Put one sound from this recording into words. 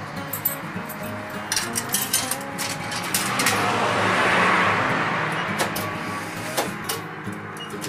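Buttons on a ticket machine click as they are pressed.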